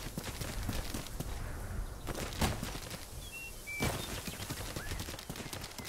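Leaves rustle as a beast pushes through dense plants.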